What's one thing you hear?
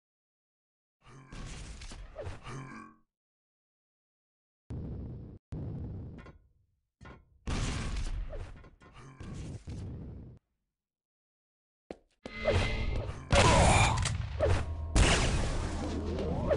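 A young man talks in bursts into a close microphone.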